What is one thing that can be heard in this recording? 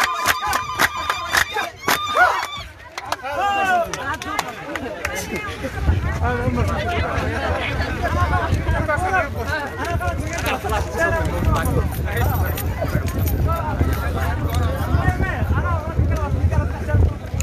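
A crowd of men and women sings and chants together outdoors.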